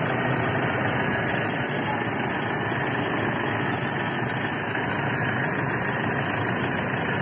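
A car engine idles with a steady, loud rumble close by.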